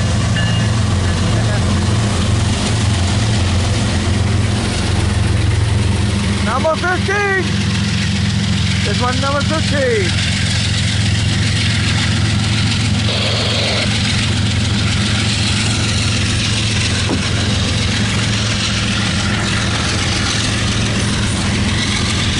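Train wheels clatter and rattle steadily on the rails.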